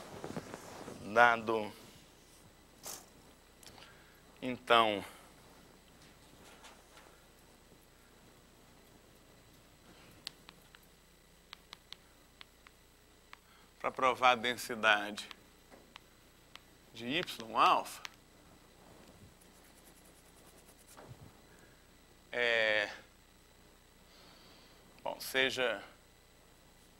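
A man speaks through a microphone in short, spaced bursts, lecturing calmly.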